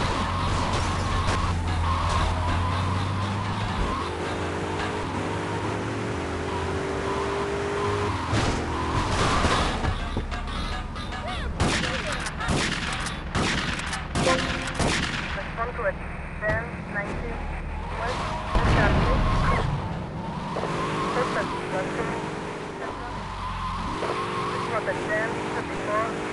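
A car engine hums and revs as it drives.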